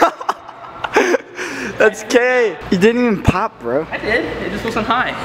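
A young man laughs and talks nearby.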